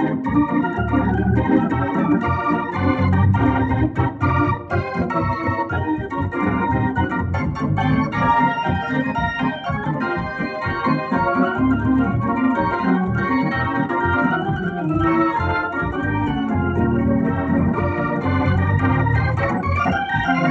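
Deep organ bass notes pulse underneath.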